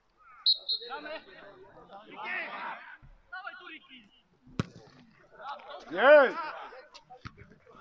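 Players shout loudly across an open field.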